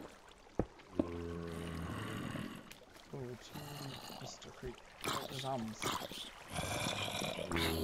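Zombies groan in low, rough moans.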